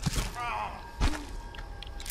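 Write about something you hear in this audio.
A body thuds heavily onto the ground.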